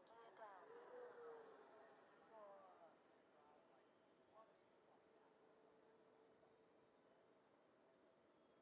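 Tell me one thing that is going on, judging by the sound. A small model plane's motor buzzes faintly overhead.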